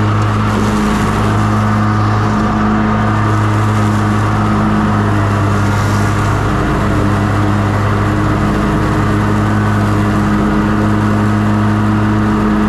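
A riding mower engine drones steadily up close.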